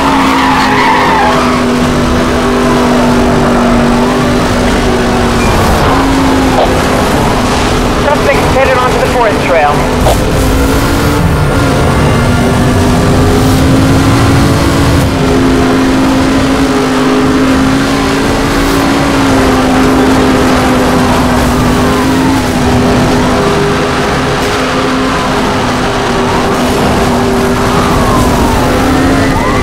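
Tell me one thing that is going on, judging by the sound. Tyres crunch and skid over dirt.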